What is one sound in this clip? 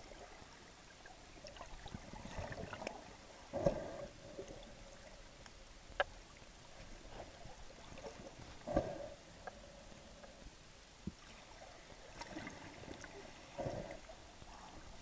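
Water surges and sloshes, heard muffled from underwater, in bursts.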